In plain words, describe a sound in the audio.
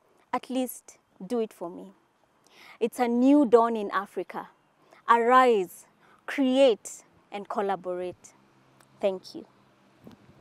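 A young woman speaks warmly and with animation close to a microphone.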